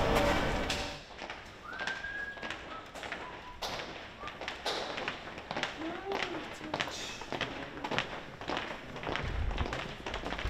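Footsteps tap along a hard floor.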